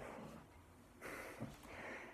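A young man blows out a long breath.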